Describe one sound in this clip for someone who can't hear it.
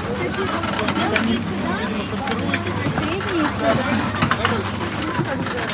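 Fruit knocks and rolls into plastic crates.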